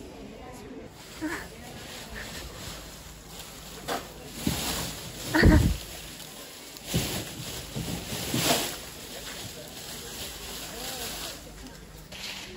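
Leafy branches rustle close by.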